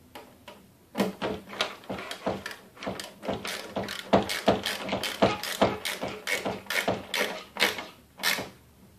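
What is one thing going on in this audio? A screwdriver ratchets with rapid clicks.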